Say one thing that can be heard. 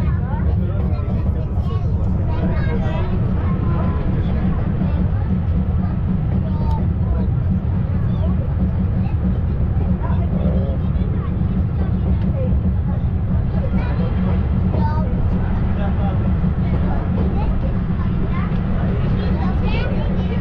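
Wind rushes past an open train car.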